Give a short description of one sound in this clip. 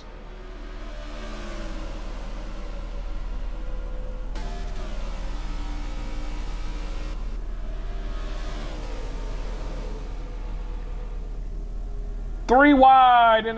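Race car engines roar and whine past at speed.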